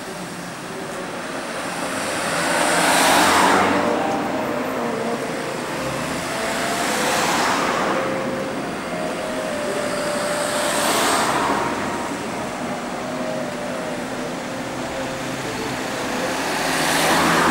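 Cars pass close by one after another, their tyres hissing on the road.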